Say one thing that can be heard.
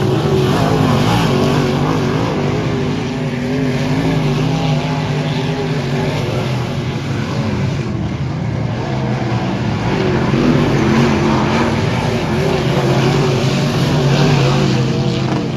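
Race car engines roar loudly as the cars circle a dirt track.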